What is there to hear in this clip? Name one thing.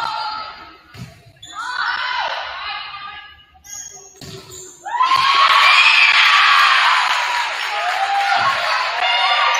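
A volleyball thuds off players' hands.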